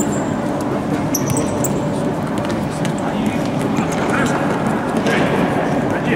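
A ball thuds off players' feet in an echoing hall.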